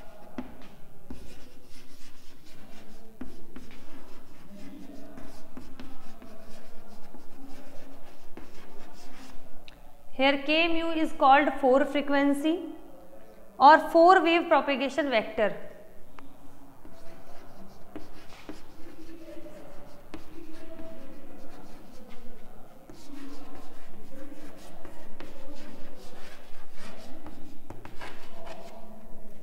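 A young woman speaks calmly, explaining.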